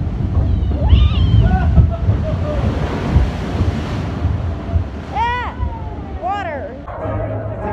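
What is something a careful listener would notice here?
A young girl screams with excitement, close by.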